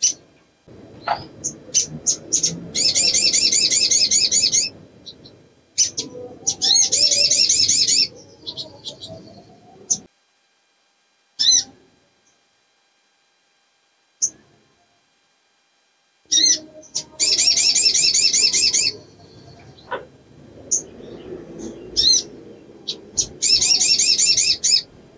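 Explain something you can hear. A small bird sings loud, fast trills and chirps close by.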